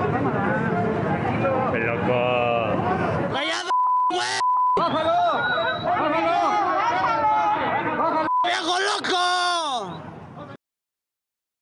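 A crowd of men shout and argue loudly at close range.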